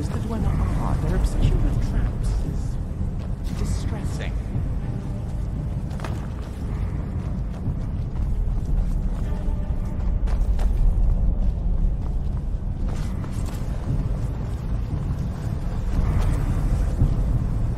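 Armoured footsteps clank on a stone and metal floor.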